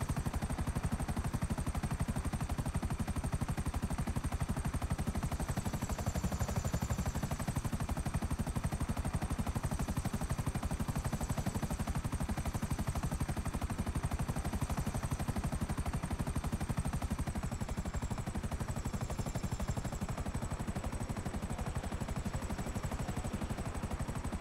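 A helicopter's rotor chops as it flies.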